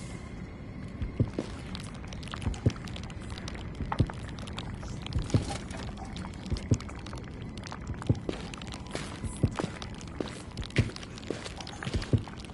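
Footsteps tread slowly on a stone floor.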